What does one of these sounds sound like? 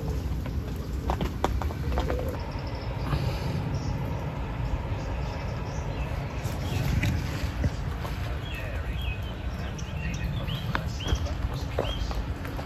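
Wind blows steadily outdoors and rustles the leaves.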